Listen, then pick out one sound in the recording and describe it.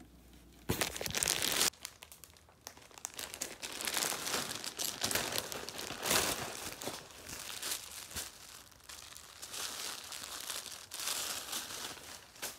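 A plastic bag rustles and crinkles close by.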